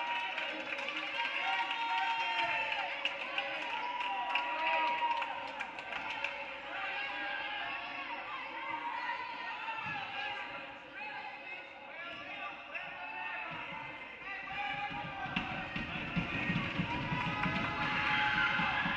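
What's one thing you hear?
A crowd murmurs and calls out in an echoing gym.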